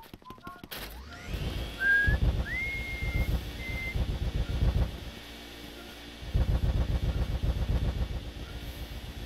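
A vacuum roars and whooshes in a video game.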